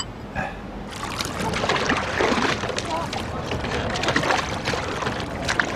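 An oar splashes softly in water.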